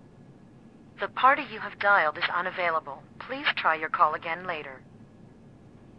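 A man speaks into a telephone.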